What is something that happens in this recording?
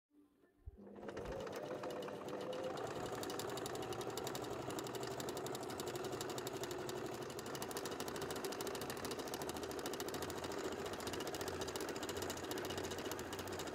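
A sewing machine whirs and clatters rapidly as it stitches.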